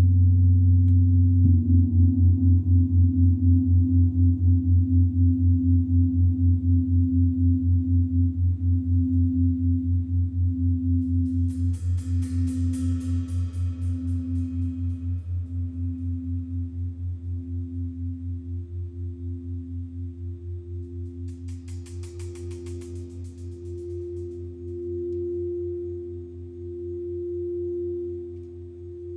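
A large gong hums deeply with a slow pulsing throb that gradually fades.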